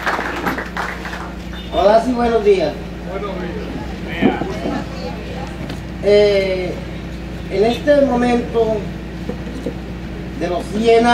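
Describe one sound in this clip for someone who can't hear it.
A middle-aged man speaks slowly into a microphone over a loudspeaker, outdoors.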